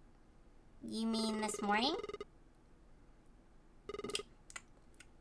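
A young woman speaks playfully into a close microphone.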